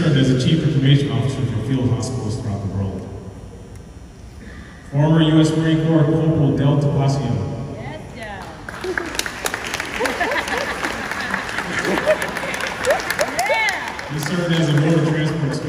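A man speaks steadily through a microphone and loudspeakers in a large echoing hall.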